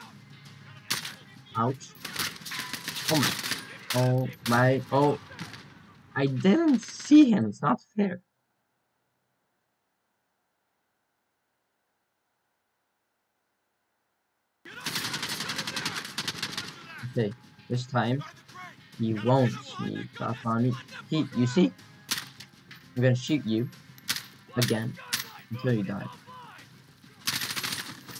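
Rifle shots fire in short bursts.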